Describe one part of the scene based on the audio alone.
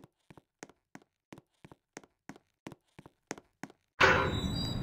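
Footsteps tap lightly in a steady rhythm.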